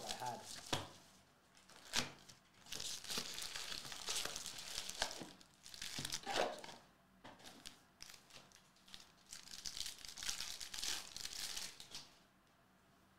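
Plastic wrappers crinkle and rustle as packs are handled and torn open.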